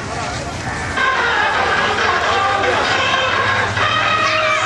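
Children shout and chatter on a fairground ride.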